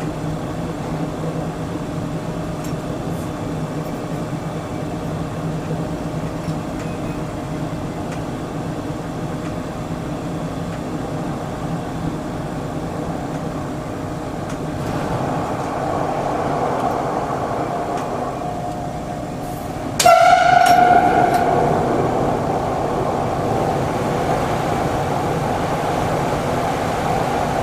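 A train hums and rumbles steadily along the tracks.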